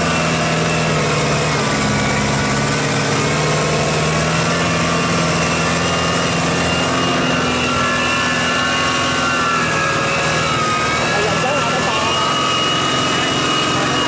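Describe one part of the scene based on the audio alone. A tractor engine runs loudly and steadily close by.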